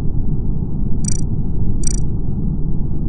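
Short electronic blips sound as a game menu is clicked.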